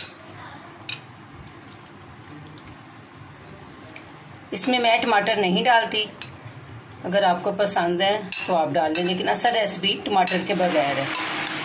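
A spoon scrapes and taps against a glass bowl.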